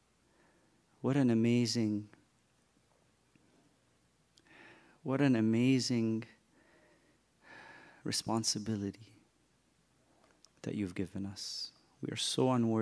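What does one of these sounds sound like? A man speaks slowly and with feeling into a microphone, in short phrases with pauses.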